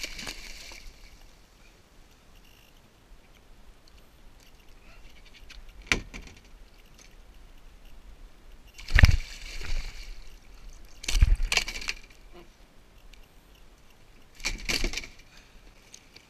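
Water splashes as a fish thrashes at the side of a kayak.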